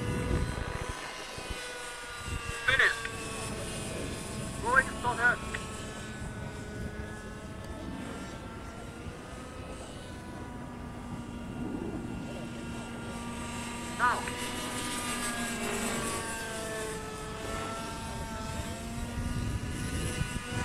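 A model helicopter's engine whines steadily overhead, rising and falling in pitch.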